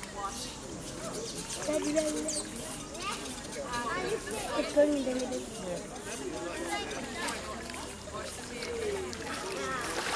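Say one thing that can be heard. A crowd of people chatters across the water.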